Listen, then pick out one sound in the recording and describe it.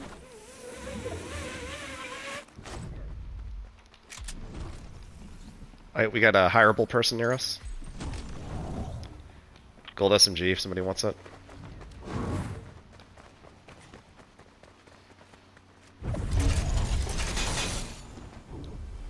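A zipline whirs steadily as a character rides along it.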